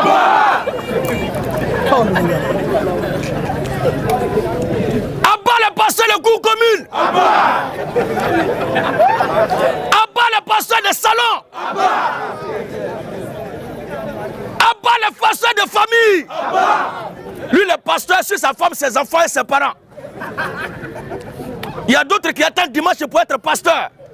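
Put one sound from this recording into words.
A man preaches loudly and with animation through a clip-on microphone.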